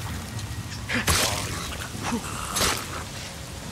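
Heavy punches thud against a body.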